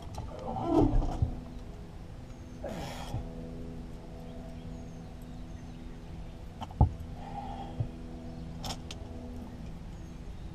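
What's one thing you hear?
A fishing reel clicks while being cranked.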